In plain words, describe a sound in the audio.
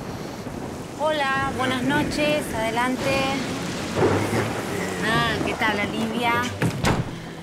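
Young women shriek and shout.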